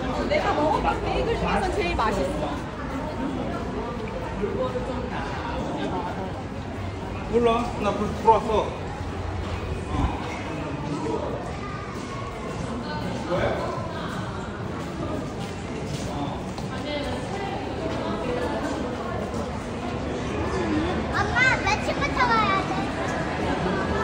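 A crowd of people chatters nearby in a large, echoing indoor space.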